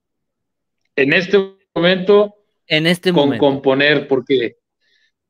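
A middle-aged man speaks with animation over an online call.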